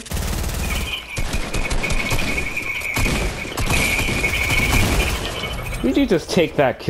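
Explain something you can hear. Gunshots crack rapidly in a video game.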